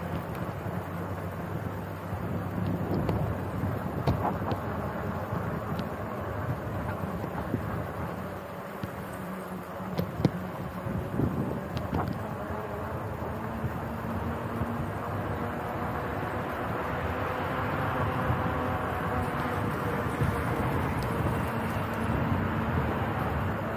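Cars pass along a nearby road with a steady traffic rush.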